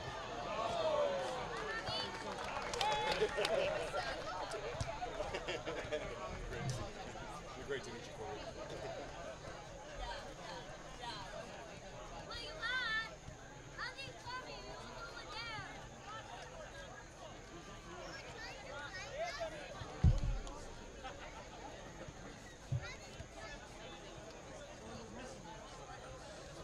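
A crowd of spectators chatters outdoors at a distance.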